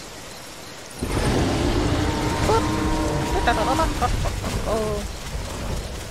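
A small dinosaur gives shrill, chirping calls.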